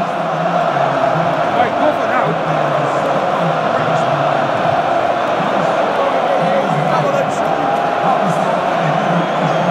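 Loud music booms over the arena's loudspeakers.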